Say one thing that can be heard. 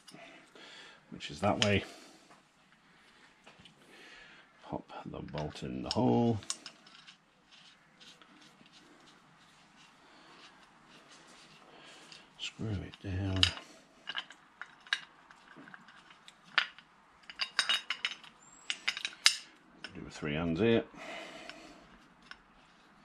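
Metal parts click and clink together as hands handle them.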